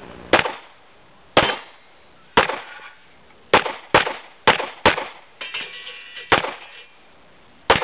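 Gunshots crack one after another outdoors, each echoing briefly.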